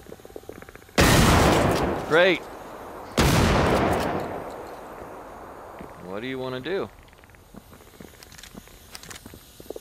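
A gunshot booms and echoes.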